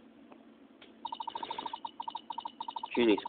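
Rapid electronic blips chirp as dialogue text prints.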